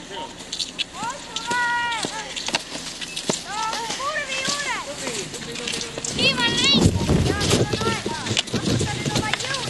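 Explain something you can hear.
Women and children cheer and shout encouragement nearby.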